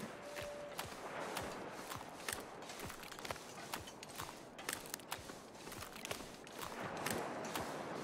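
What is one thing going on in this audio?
Footsteps crunch steadily on ice and snow.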